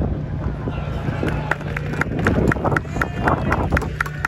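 A crowd claps and bangs noisemakers in rhythm.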